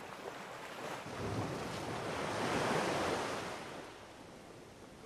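Waves break and wash onto a shore.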